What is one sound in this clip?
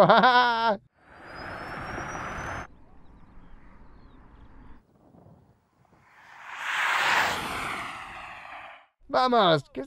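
A car speeds past with a rushing whoosh.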